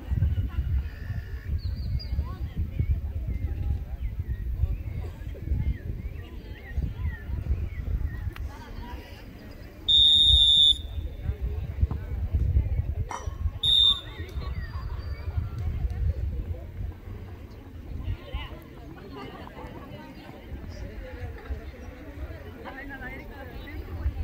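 Young women shout to each other in the distance.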